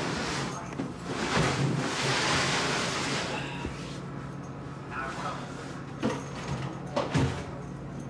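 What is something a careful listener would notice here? A cloth sheet flaps and rustles as a man shakes it out.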